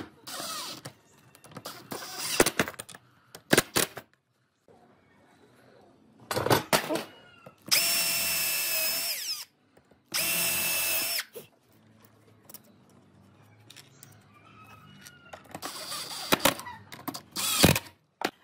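A cordless drill drives screws into wood.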